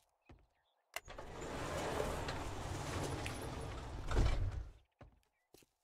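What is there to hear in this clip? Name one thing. A metal garage door rumbles as it rolls open.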